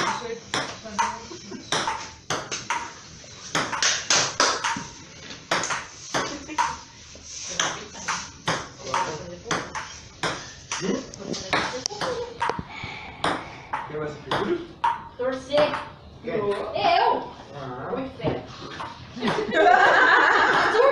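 Young people chat and laugh nearby.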